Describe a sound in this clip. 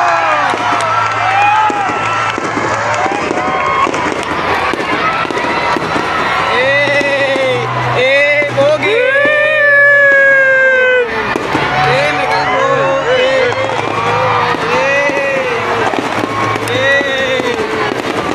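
Fireworks whistle as they shoot up, one after another.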